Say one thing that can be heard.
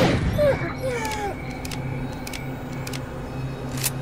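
A gun's bolt is pulled back with a metallic clack.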